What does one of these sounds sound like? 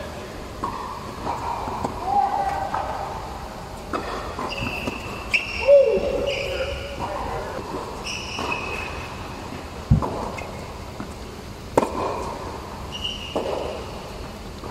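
Tennis balls are struck with rackets in a large echoing hall.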